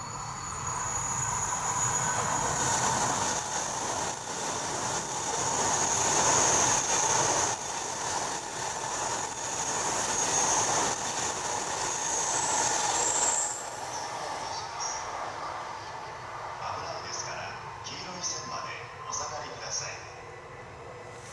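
A high-speed bullet train rushes past on an elevated track and fades into the distance.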